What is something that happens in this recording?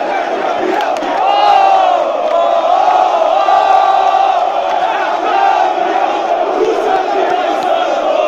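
A man close by sings along loudly.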